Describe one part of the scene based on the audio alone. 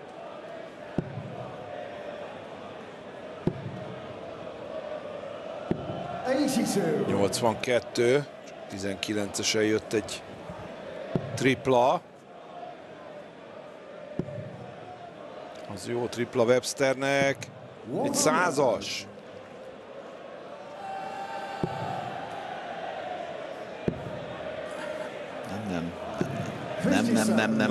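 A large crowd sings and chants in a big echoing hall.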